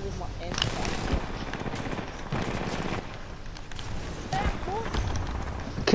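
Gunshots from a video game crack in quick bursts.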